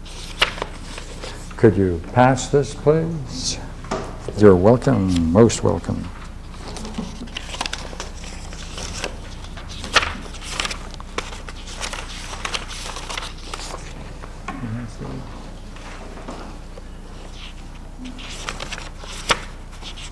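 Paper rustles as pages are turned.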